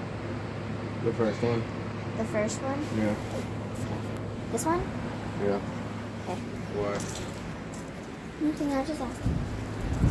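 A young girl talks close by, with animation.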